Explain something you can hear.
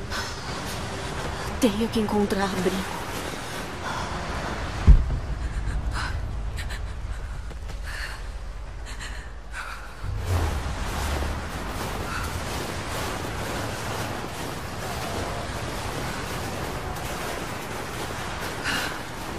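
A blizzard wind howls steadily outdoors.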